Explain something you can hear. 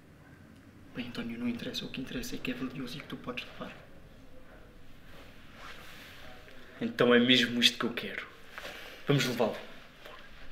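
A young man talks quietly and casually nearby.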